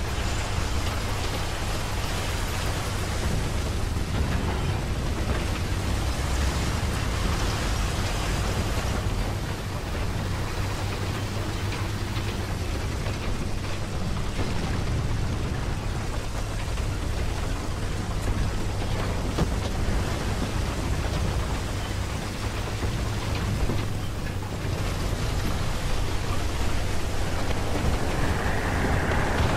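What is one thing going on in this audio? Water splashes and churns around a tank moving through a river.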